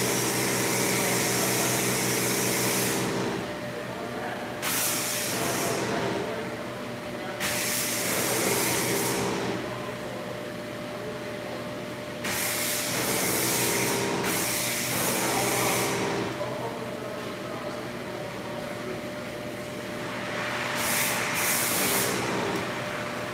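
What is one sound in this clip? A pressure washer sprays water in hissing bursts.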